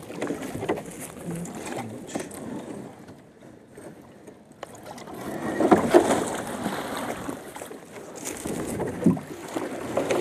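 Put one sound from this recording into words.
A stick scrapes against a metal boat.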